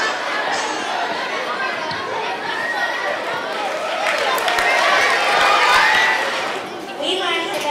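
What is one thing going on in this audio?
A crowd of children and adults chatters loudly in a large echoing hall.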